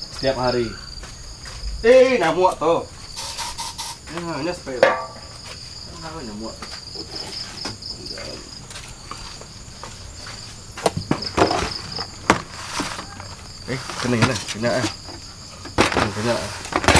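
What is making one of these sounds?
A man talks casually, close by.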